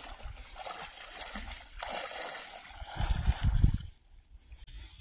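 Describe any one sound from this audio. Water splashes and sloshes around a man's legs as he wades.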